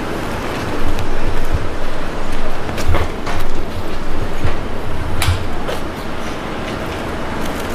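A car door clicks and knocks as it is opened and handled.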